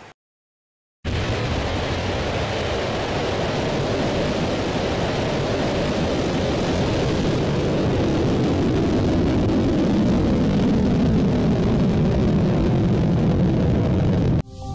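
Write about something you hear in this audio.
A rocket engine roars loudly as a missile lifts off, slowly fading into a distant rumble.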